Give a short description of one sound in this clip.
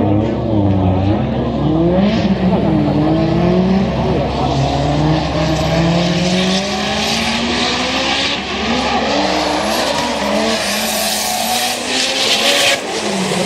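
Racing car engines rev hard and wail, rising and falling.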